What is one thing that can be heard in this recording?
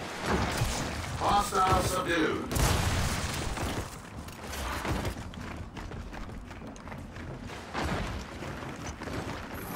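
Gunfire bursts rapidly.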